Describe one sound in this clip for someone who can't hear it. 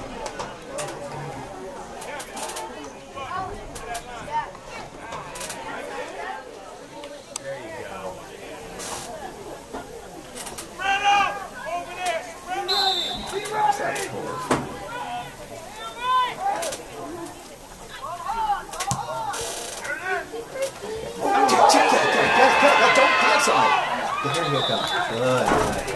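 A crowd of people chatters and talks nearby outdoors.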